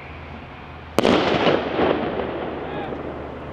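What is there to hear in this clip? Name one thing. A firework bursts with a sharp bang overhead, echoing away.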